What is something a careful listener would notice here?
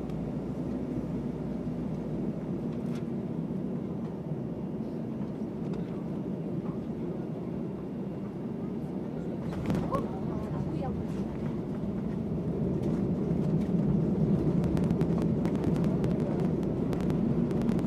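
The wheels of an airliner rumble and thump along a runway.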